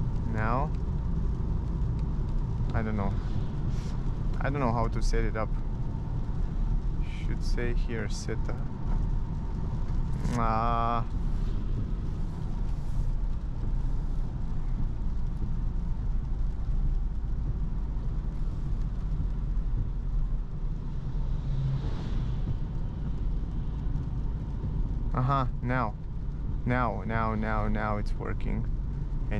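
Tyres hiss over a wet road.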